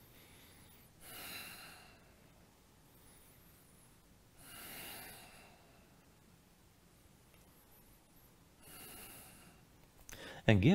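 A man breathes out heavily in rhythm with an exercise.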